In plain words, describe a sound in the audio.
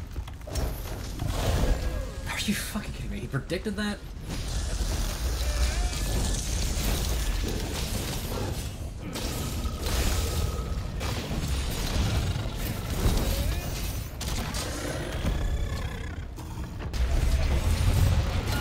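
A huge monster roars.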